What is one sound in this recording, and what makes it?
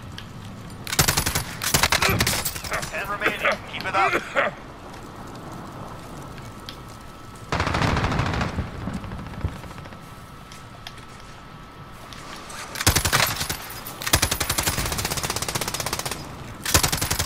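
A machine gun fires loud rapid bursts.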